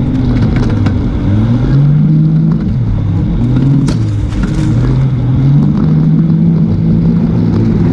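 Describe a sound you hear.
Tyres crunch and rattle over a rough dirt trail.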